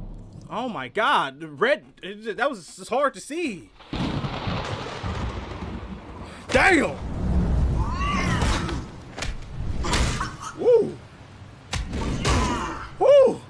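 A young man exclaims loudly with excitement, close to a microphone.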